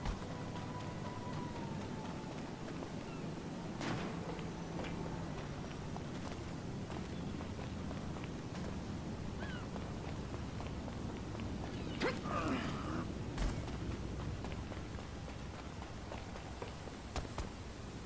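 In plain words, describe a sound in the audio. Footsteps run quickly across gravel.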